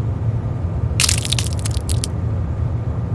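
Thick liquid splatters wetly onto a hard floor.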